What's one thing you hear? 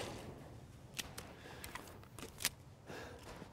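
A pistol's magazine is swapped with sharp metallic clicks.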